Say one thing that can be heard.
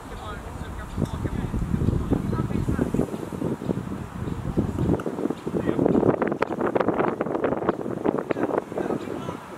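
Young players call out to each other across an open field.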